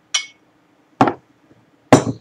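A glass is set down on a wooden table with a knock.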